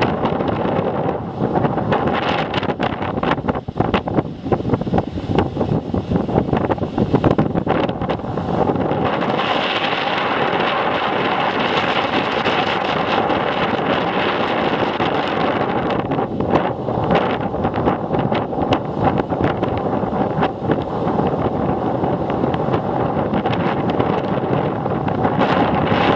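Waves crash and wash over rocks in a steady roar close by.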